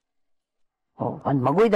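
A young woman speaks tearfully into a phone.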